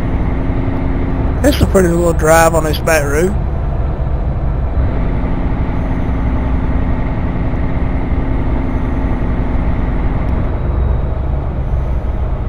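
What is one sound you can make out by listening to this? A truck engine hums steadily while driving along a road.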